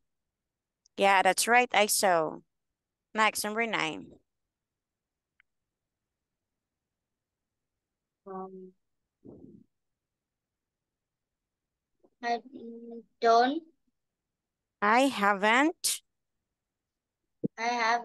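A woman speaks calmly and clearly over an online call, in short bursts with pauses.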